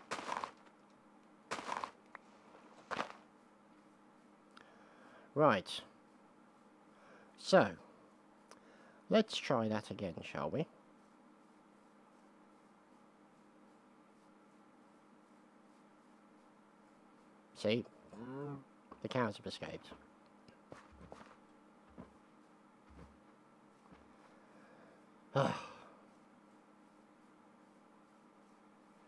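Footsteps tread softly on grass.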